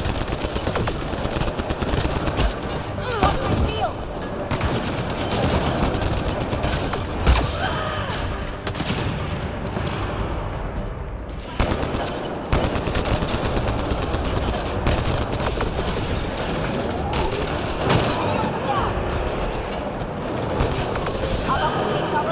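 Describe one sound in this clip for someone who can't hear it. Energy blasts crackle and burst.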